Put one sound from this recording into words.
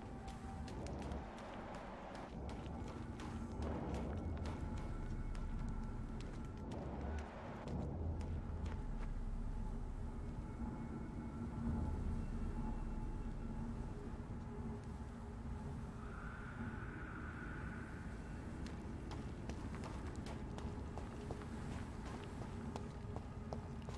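Footsteps tap on cobblestones.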